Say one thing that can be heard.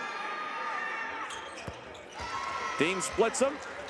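A basketball drops through the net.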